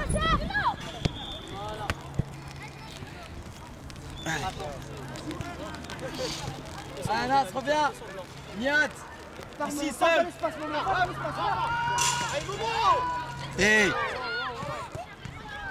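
A football thuds as a child kicks it.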